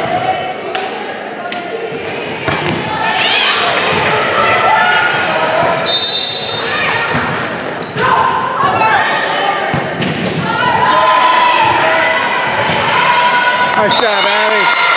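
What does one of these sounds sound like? A volleyball is struck with sharp smacks in an echoing gym.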